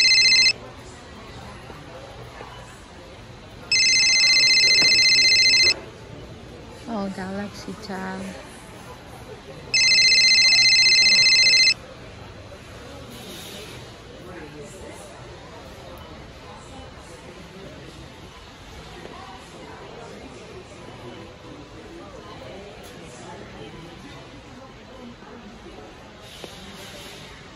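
A few shoppers move about in a large, echoing indoor hall with a low background hum.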